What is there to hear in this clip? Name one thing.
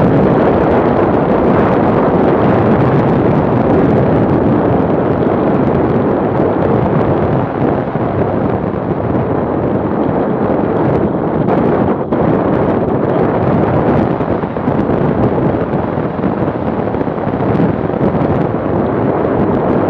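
Wind roars steadily over a moving motorcycle.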